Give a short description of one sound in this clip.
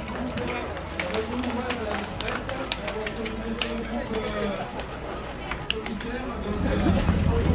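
Bicycle wheels and chains whir past close by.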